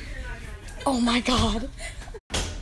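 A young woman laughs loudly close by.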